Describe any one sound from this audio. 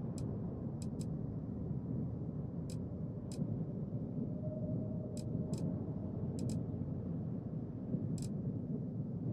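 Short interface clicks sound as menu items are selected.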